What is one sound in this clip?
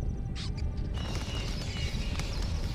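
Birds chirp and twitter.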